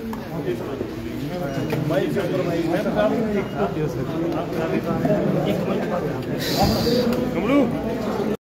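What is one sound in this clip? A crowd of men talk and shout over one another close by.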